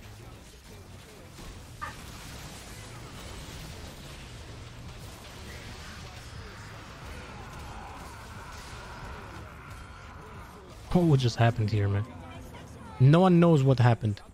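Game spell effects whoosh and crackle during a battle.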